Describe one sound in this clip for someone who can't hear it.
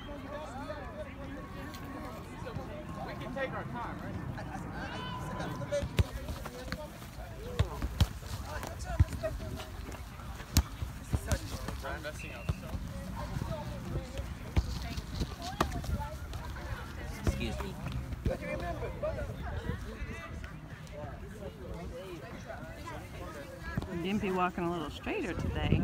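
Children call out to each other outdoors.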